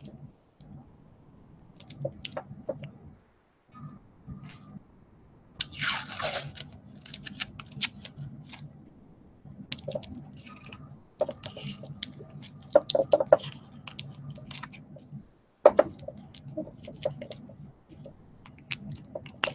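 Fingers press and rub soft clay with light rustles and small clicks.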